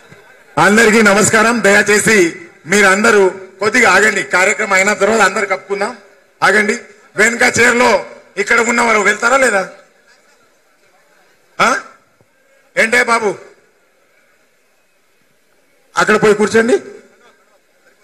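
A man speaks loudly and with animation through a microphone and loudspeakers.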